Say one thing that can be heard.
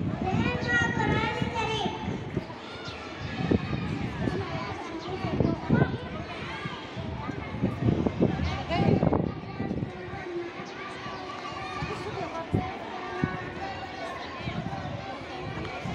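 Several young children chatter and call out nearby.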